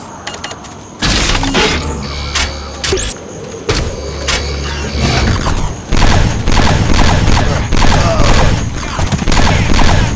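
A futuristic rifle fires rapid energy shots.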